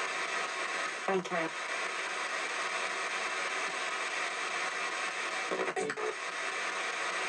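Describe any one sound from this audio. A woman reads aloud quietly, sounding muffled.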